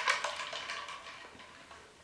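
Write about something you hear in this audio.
A drink is sipped through a straw.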